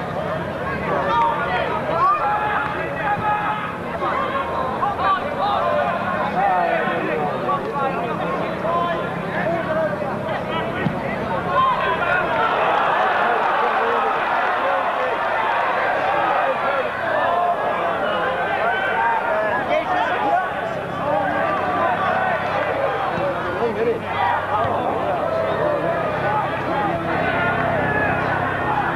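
A crowd of football spectators chatters and calls out outdoors.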